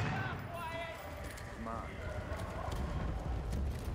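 A gun magazine clicks into place.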